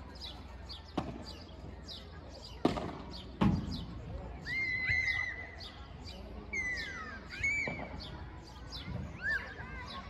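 Padel balls pop sharply off rackets outdoors.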